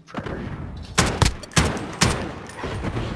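An assault rifle fires in short bursts.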